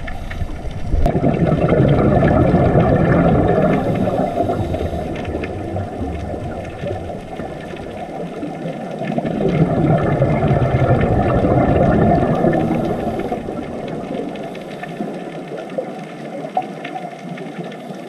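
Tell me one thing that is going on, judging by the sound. Air bubbles gurgle and rumble loudly underwater in bursts.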